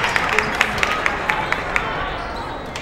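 Spectators clap rhythmically in an echoing gym.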